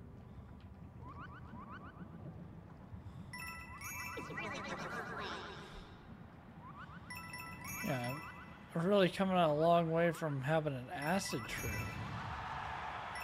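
Game sound effects chime and jingle.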